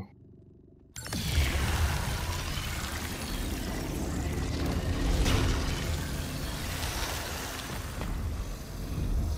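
A deep whooshing rumble swells up suddenly and slowly settles.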